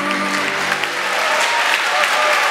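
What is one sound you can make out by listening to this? A children's choir sings in a large echoing hall.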